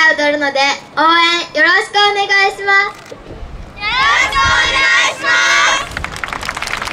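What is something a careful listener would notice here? A young girl shouts energetically through a microphone.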